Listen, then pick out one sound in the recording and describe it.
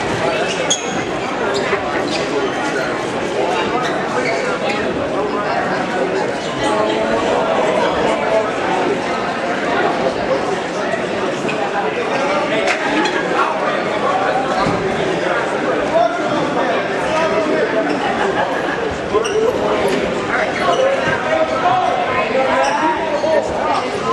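Spectators shout and cheer in a gym.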